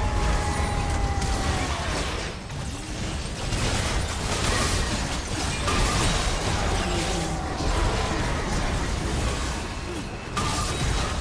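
Magic spells crackle and blast in a busy fight of a video game.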